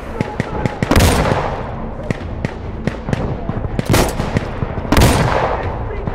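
A rifle fires sharp, loud shots that echo away.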